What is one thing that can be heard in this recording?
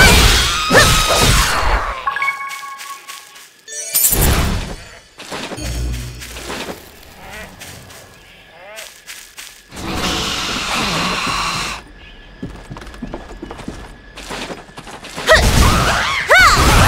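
Magic blasts burst with bright, shimmering tones.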